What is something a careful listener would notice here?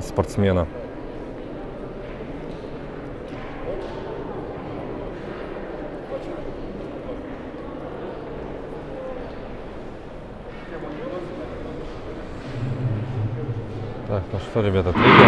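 A murmur of voices echoes through a large hall.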